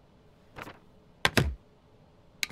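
A rubber stamp thumps down onto paper.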